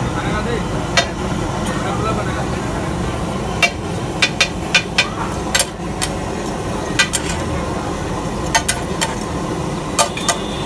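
A metal spatula taps and scrapes against a griddle.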